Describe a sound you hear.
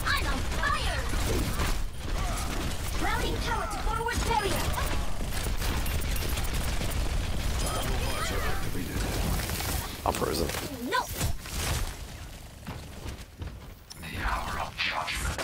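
Game guns fire in rapid bursts.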